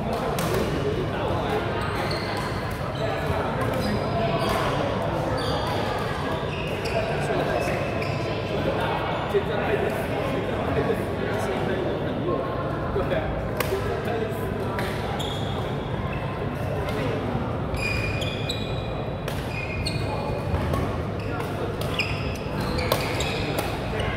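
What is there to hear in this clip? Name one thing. Shuttlecocks are struck by rackets with sharp pops, echoing through a large hall.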